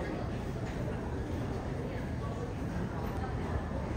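A crowd of people chatters quietly indoors.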